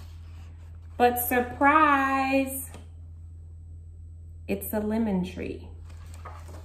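A woman reads aloud with expression, close to a microphone.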